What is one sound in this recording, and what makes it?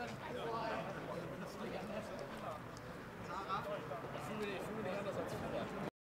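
Several men talk quietly nearby outdoors.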